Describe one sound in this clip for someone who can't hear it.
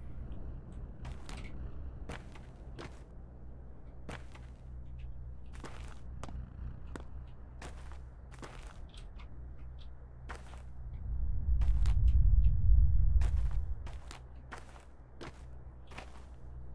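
Footsteps thud slowly and evenly on a hard floor.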